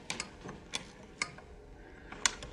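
A clockwork mechanism ticks and clicks close by.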